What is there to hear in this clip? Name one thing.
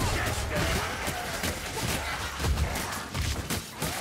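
Blades slash and thud into flesh in a fierce close fight.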